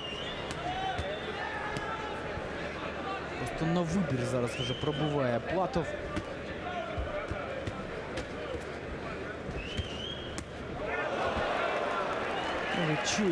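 A large crowd cheers and roars in a big hall.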